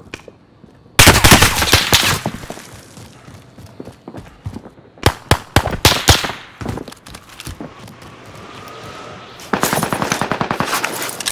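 A machine gun fires in loud, rapid bursts.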